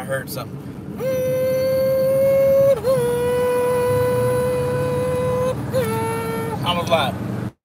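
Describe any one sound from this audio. A man sings long, drawn-out notes.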